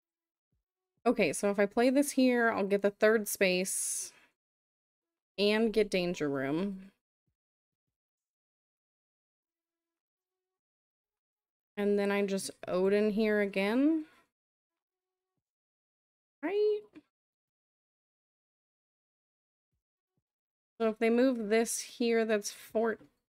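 A woman talks with animation into a close microphone, in bursts with pauses.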